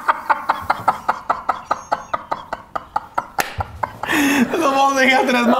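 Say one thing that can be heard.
Another man laughs along, close by.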